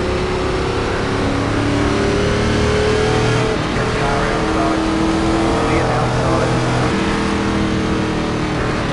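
Other racing car engines drone nearby, rising and falling in pitch.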